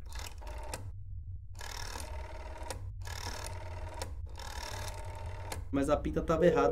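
A telephone dial whirs as it turns.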